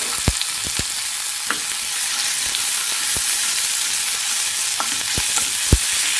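Onions sizzle steadily in hot oil.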